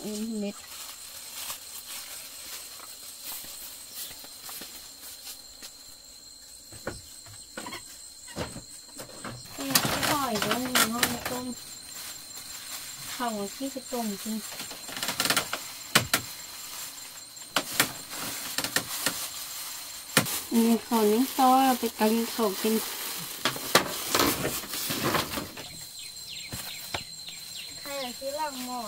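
A young boy speaks calmly close by.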